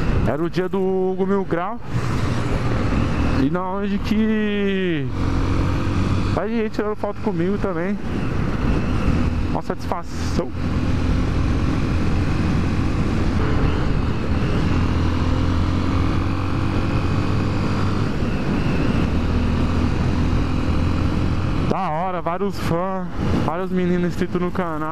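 A motorcycle engine drones steadily at highway speed.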